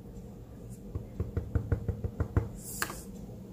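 An ink pad taps repeatedly against paper.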